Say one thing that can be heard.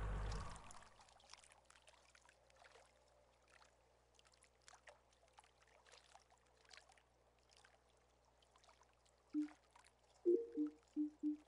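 Water laps gently around a wading angler.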